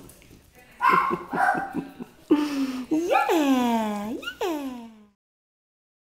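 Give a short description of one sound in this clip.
A puppy whines and yelps in high, wavering cries close by.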